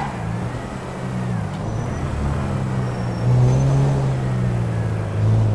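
A car engine hums steadily as the car drives along, growing louder partway through.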